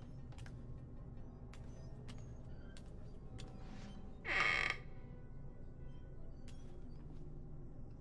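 Footsteps thud slowly on wooden floorboards.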